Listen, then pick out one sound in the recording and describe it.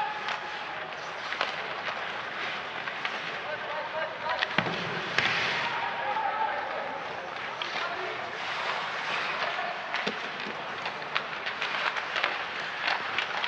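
Skates scrape and hiss on ice.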